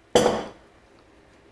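A spoon scrapes inside a metal pot.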